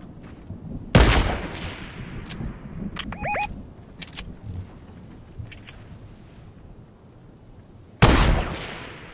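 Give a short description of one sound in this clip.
A sniper rifle fires with a loud crack and an echo.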